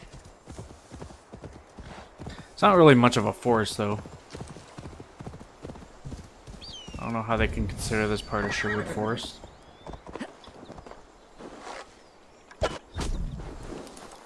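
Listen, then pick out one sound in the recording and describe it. Hooves thud on the ground as a horse gallops.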